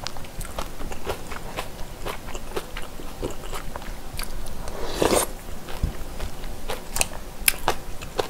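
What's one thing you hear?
Chopsticks scrape and tap against a plastic food tray.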